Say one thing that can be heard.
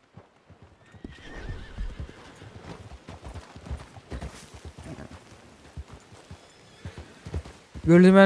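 A horse's hooves thud on the ground at a walk.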